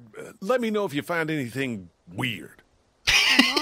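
A man speaks calmly.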